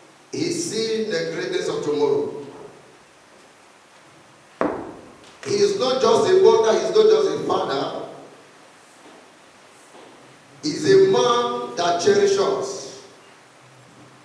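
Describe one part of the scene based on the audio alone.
A young man preaches loudly into a microphone in bursts, with pauses between phrases.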